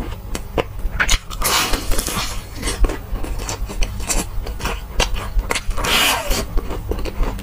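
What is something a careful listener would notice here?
A young man bites into crispy fried chicken with a loud crunch close to a microphone.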